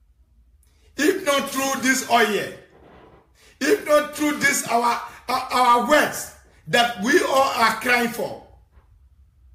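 A young man sings loudly into a close microphone.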